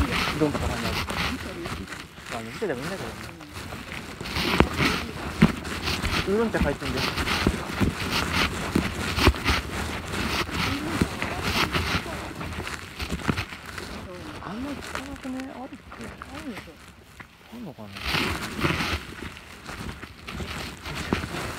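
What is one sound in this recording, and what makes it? Footsteps crunch and rustle through dry leaves on a trail.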